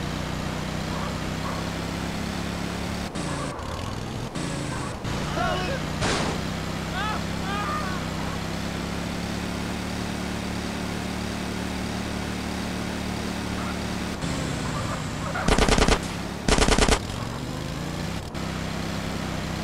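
A small kart engine buzzes steadily at high revs.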